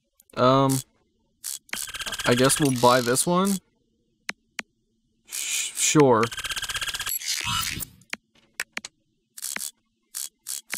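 Game menu sounds chime and click as options are selected.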